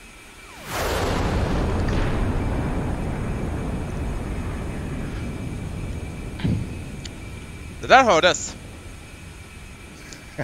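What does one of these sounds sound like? A jet engine roars loudly as a jet takes off, then slowly fades into the distance.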